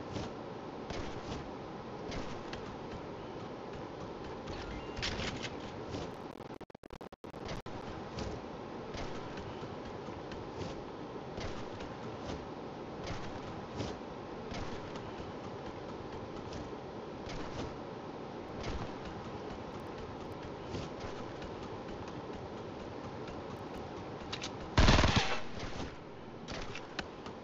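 Footsteps crunch through snow at a steady running pace.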